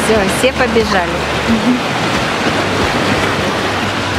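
A man splashes through shallow water at a run.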